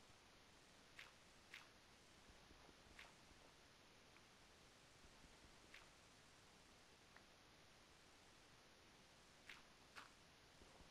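Dirt blocks are dug and placed with soft crunching thuds.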